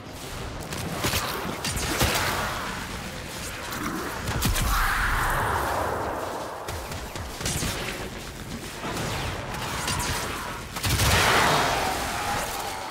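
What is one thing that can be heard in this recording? Explosions burst with loud crackling blasts.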